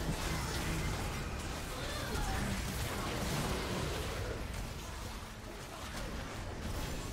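Spell effects crackle and boom in a fast fight.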